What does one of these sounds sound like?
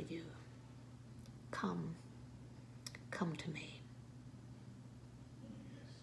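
An older woman speaks calmly and close by, in short phrases with pauses.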